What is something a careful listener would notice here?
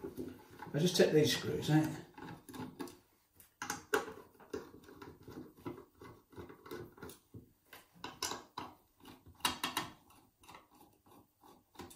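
A screwdriver turns a screw with small clicks and scrapes.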